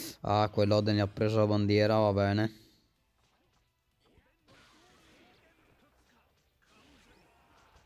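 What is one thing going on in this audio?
Blades slash and blows land in a fight.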